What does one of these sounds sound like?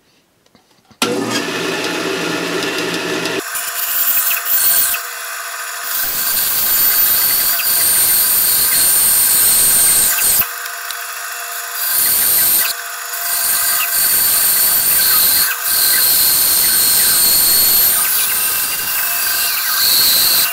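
A band saw motor hums steadily.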